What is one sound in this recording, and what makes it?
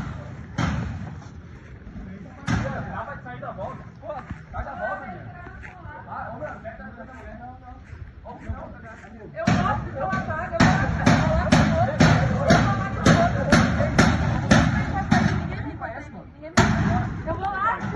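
Men shout excitedly nearby outdoors.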